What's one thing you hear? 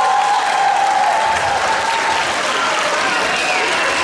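Young girls' voices ring out through microphones on a stage.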